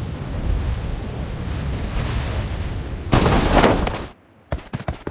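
Wind rushes loudly past during a parachute descent.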